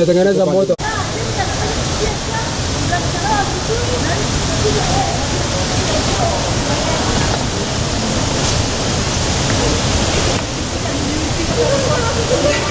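Water rushes through a turbine pipe.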